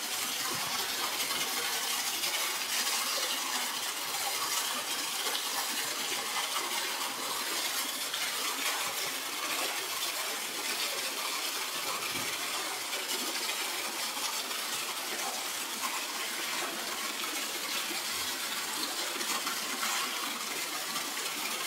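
Water gushes and splashes steadily into a pool.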